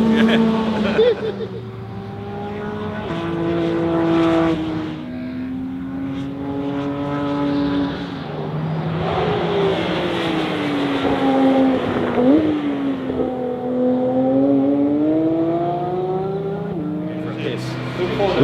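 A sports car engine revs high and roars past, changing gear.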